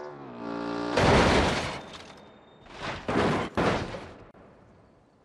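A car crashes and tumbles with loud metal bangs and crunches.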